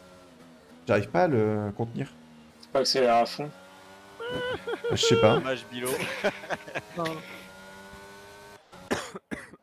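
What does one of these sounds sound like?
A racing car engine drones and whines at high revs.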